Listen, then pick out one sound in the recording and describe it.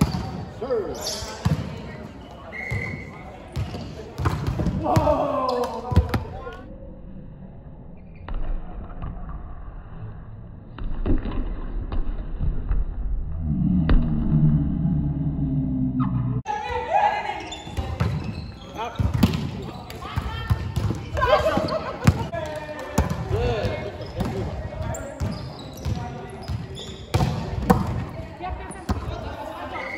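A volleyball is struck with dull slaps in a large echoing hall.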